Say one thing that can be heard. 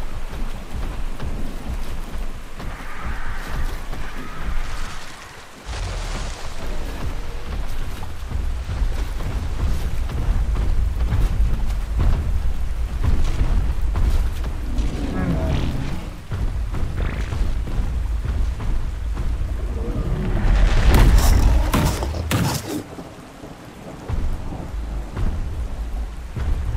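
Water splashes as a large creature wades through it.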